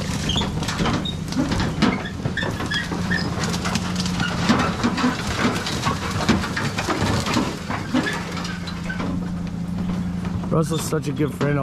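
Loose metal parts rattle and clank over a bumpy track.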